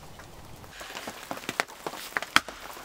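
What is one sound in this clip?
An axe strikes wood with sharp, repeated chops.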